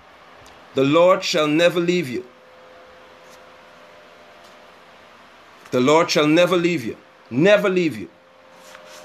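A man speaks calmly and close to a phone microphone, in short bursts with pauses.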